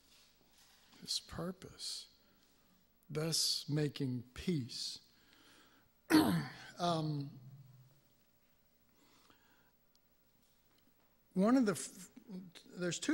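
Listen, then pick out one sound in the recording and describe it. An older man speaks calmly through a microphone, with pauses.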